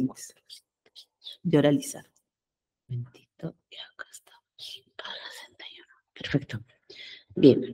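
A woman speaks calmly through an online call.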